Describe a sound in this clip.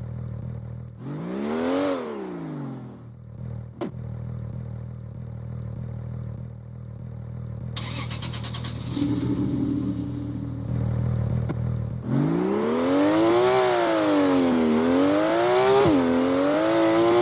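A car engine revs, rising and falling in pitch.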